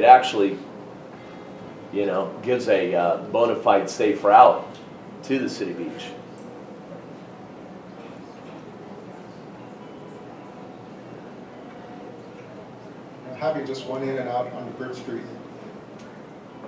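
An elderly man speaks calmly into a microphone, heard through a loudspeaker in a large room.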